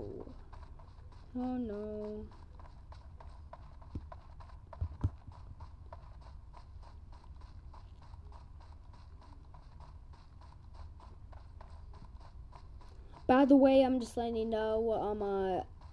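Footsteps run quickly and steadily over grass.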